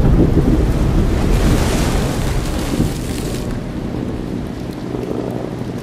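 Stormy sea waves crash and surge.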